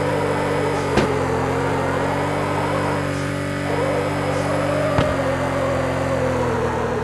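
A car engine roars steadily at high revs.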